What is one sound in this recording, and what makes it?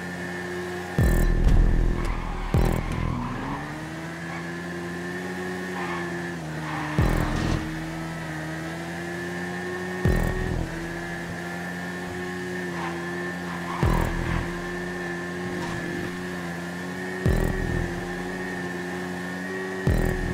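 A motorcycle engine drones steadily at high speed.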